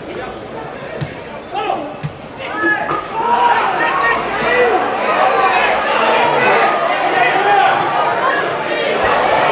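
A crowd of spectators chatters and shouts close by, growing louder.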